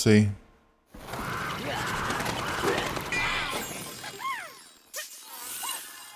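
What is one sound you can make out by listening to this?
Magical spell effects whoosh and shimmer.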